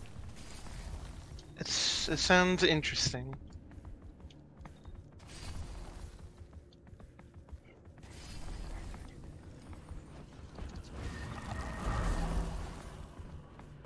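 A magical blast bursts with a whoosh.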